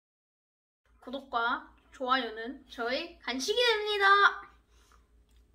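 A boy speaks with animation, close by.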